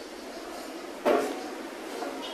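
A chair scrapes on the floor.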